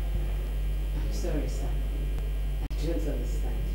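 A woman speaks quietly, close by.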